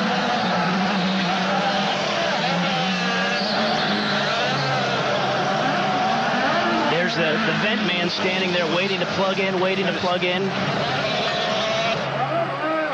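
A race car engine drones loudly and steadily.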